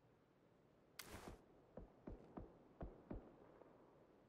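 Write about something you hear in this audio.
A rifle clicks and rattles as it is raised to aim.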